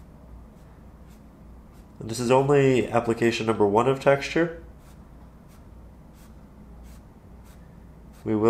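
A brush dabs softly on canvas.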